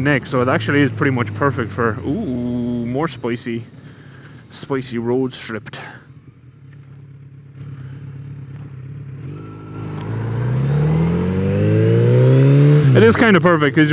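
A motorcycle engine rumbles and revs up as the bike speeds up.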